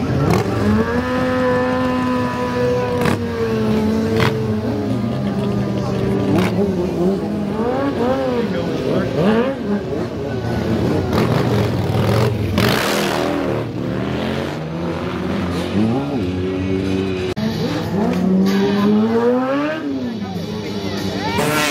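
A motorcycle engine revs loudly, rising and falling.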